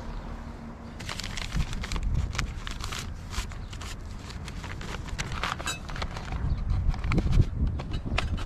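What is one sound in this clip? Paper rustles and crinkles as it is unfolded and handled.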